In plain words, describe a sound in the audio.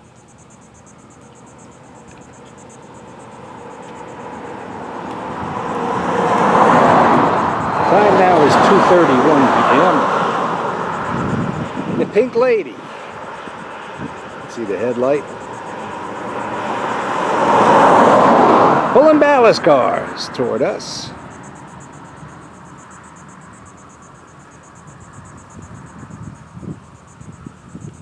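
A diesel locomotive engine rumbles as it draws closer.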